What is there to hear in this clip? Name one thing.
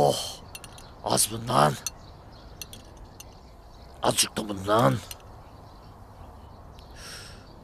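Metal tongs clink against plates.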